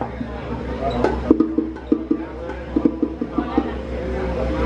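A drummer taps out a beat on hand drums.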